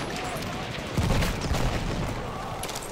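An explosion booms close by.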